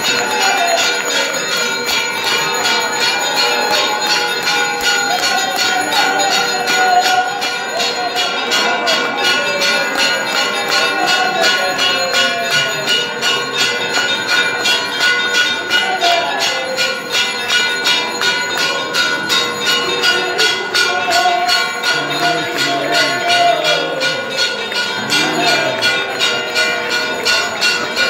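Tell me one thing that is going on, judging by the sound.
A crowd of worshippers sings a hymn together.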